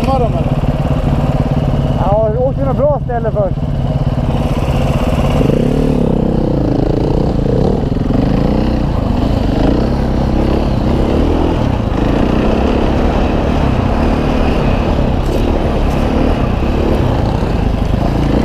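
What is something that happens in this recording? A dirt bike engine runs close by, revving up and down.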